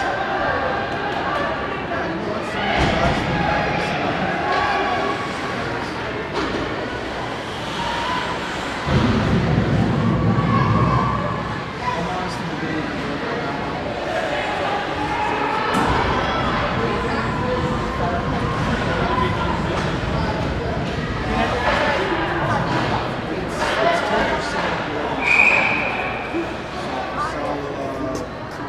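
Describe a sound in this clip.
Ice skates scrape and carve across ice in an echoing arena.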